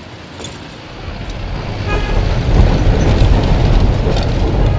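A car engine rumbles low and heavy from inside the car.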